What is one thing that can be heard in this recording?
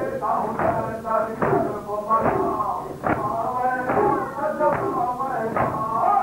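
A man chants loudly into a microphone.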